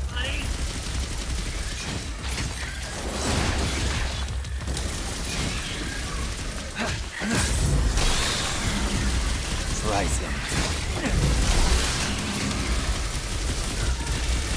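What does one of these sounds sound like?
Blades slash and strike repeatedly in a fight.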